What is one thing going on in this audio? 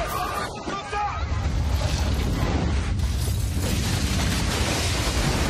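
Huge explosions roar with a deep rumble.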